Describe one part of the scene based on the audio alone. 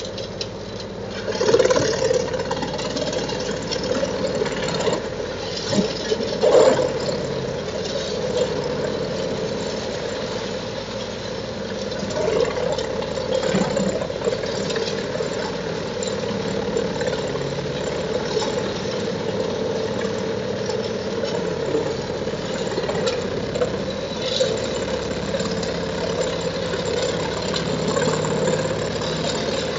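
A wood chipper roars steadily as it grinds branches.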